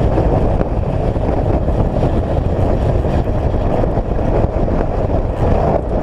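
Tyres crunch steadily over a gravel road.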